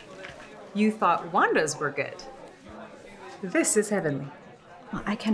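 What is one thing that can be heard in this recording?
A woman speaks with delight.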